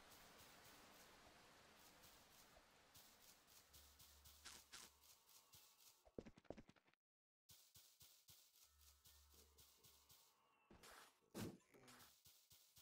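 Quick footsteps patter steadily on soft ground.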